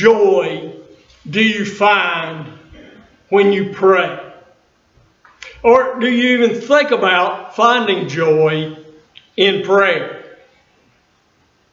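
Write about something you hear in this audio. An elderly man speaks with feeling into a microphone in a large, slightly echoing room.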